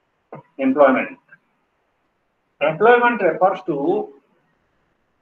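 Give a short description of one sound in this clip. A man speaks close to a phone microphone, in short bursts.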